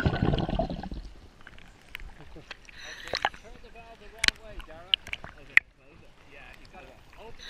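Small waves lap and splash at the water's surface.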